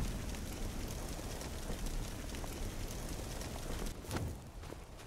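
Torch flames roar and crackle.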